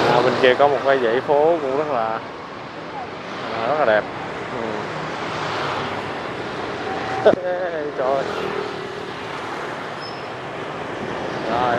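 Motorbike engines hum and buzz as traffic passes along a busy street.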